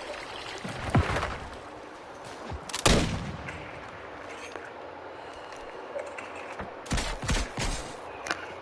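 A sniper rifle fires in a video game.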